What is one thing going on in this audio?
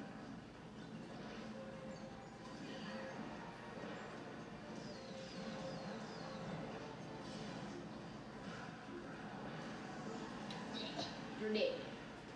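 Video game music and sound effects play from a television speaker.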